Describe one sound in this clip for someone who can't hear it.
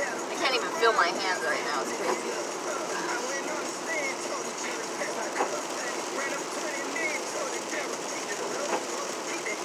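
A car hums steadily as it drives.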